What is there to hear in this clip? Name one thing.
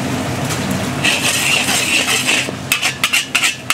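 Hot sauce sizzles and bubbles loudly in a wok.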